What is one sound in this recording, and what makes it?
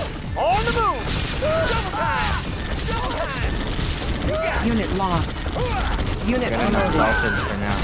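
Gunfire and explosions crackle from a video game battle.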